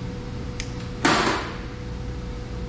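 An electric welder crackles and hisses in a short burst.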